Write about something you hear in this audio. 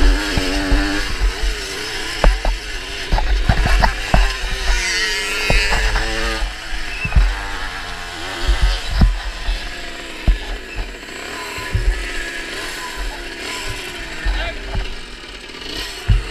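A motorcycle engine revs hard and then drops to a low idle.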